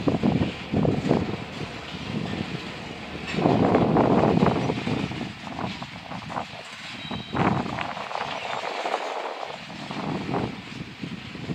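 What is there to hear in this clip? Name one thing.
A freight train rumbles past with wheels clattering on the rails.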